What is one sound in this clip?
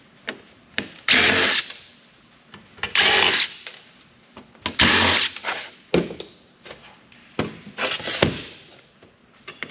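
A cordless drill driver whirs in short bursts, driving screws out of a metal drive.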